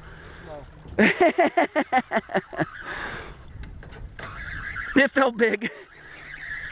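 A fishing reel's drag clicks and buzzes in rapid bursts.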